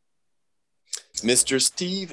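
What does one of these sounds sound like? A second man speaks over an online call.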